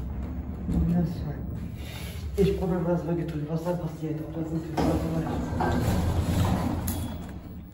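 A finger presses an elevator button with a soft click.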